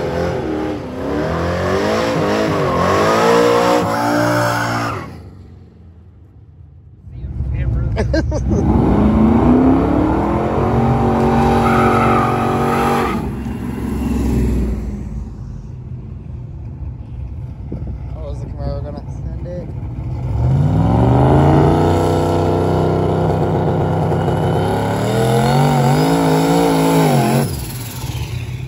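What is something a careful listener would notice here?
A car engine roars loudly and rises in pitch as the car speeds past.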